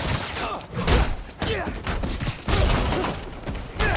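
An explosion bursts with a loud bang.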